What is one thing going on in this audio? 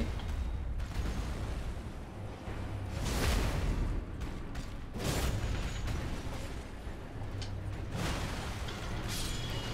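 A sword slashes and strikes a beast with heavy thuds.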